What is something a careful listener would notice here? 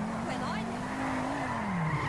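Tyres screech as a car skids around a turn.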